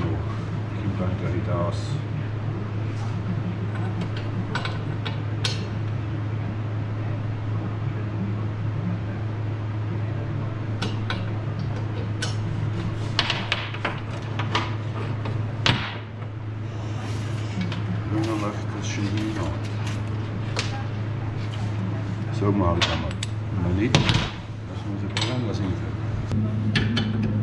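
Small metal parts clink and click as they are handled.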